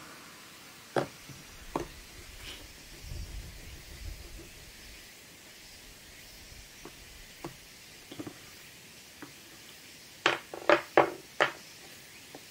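Pastel sticks click and knock against a wooden board as they are set down.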